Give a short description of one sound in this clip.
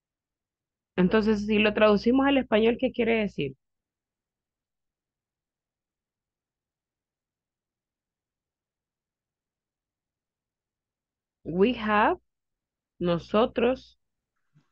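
A woman speaks calmly over an online call, in short bursts with long pauses.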